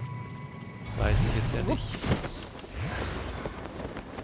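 A loud magical whoosh swells and sweeps past.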